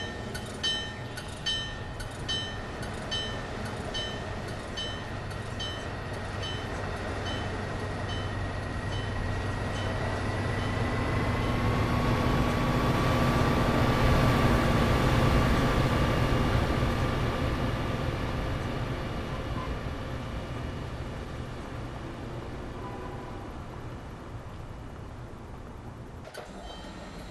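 A train rumbles past, growing louder and then slowly fading away.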